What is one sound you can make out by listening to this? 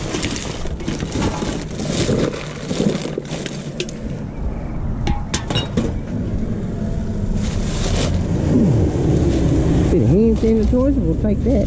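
Loose rubbish rattles and clatters as it is sorted by hand.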